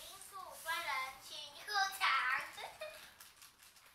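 A young child talks loudly nearby in a high voice.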